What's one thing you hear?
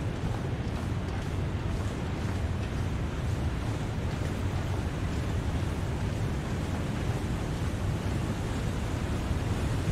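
Wind blows steadily in a snowstorm with a low, rumbling roar.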